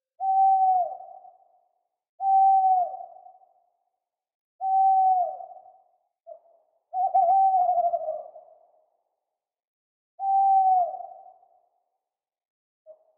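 An owl hoots again and again, each hoot holding a low, even pitch and then dropping away.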